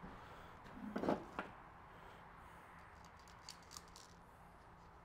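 Small metal parts clink and tap on a workbench.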